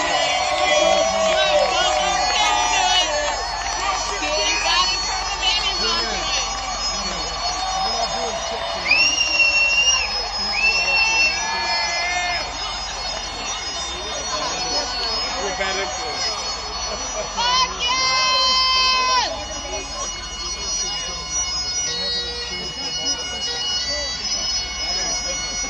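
A rock band plays loudly through large outdoor speakers.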